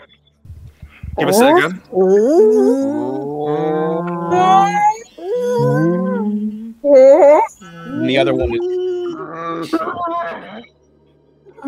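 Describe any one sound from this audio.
A man talks with animation through a microphone on an online call.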